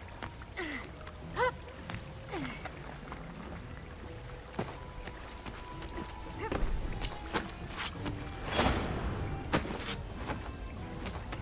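Hands scrape and grab at a stone wall while climbing.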